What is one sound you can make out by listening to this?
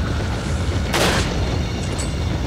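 A rifle shot booms once.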